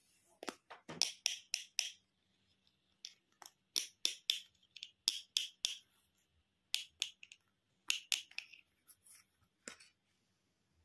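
A plastic toy tool clicks and taps against hard plastic.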